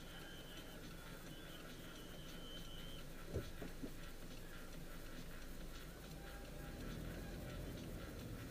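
Traffic passes by outside the car.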